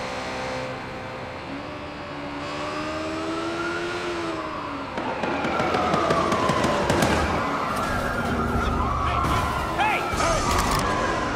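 A motorcycle engine revs and hums, rising and falling in pitch.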